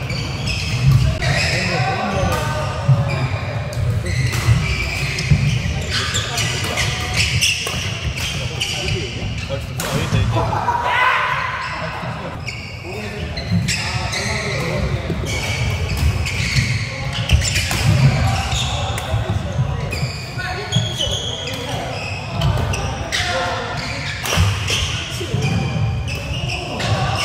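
Shoes squeak and thud on a wooden court floor.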